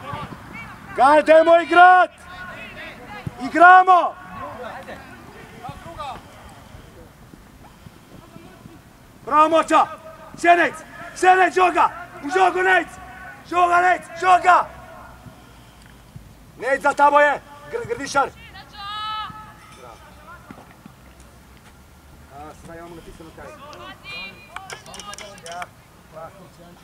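Young men shout to each other outdoors on an open field.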